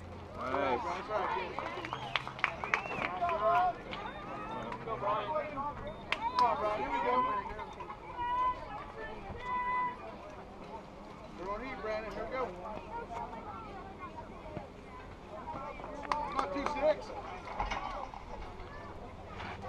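Young boys shout and call out across an open outdoor field.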